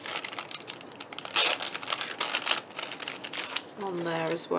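A plastic packet crinkles as it is handled.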